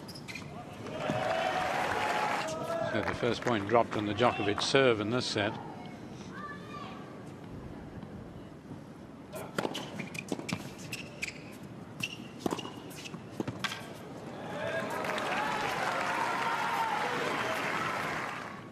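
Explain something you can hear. A crowd applauds and cheers in a large hall.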